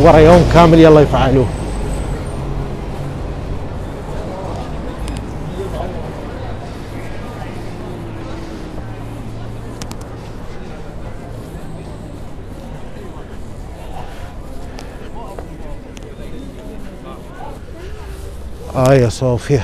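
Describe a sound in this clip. Traffic hums steadily on a nearby street.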